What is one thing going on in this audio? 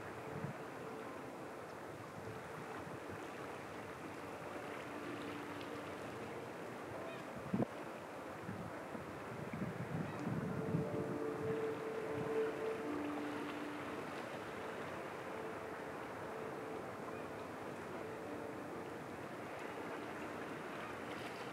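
Calm water laps gently against rocks along the shore.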